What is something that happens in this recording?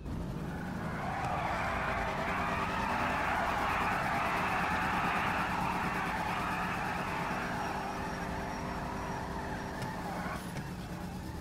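Tyres screech as they spin on pavement.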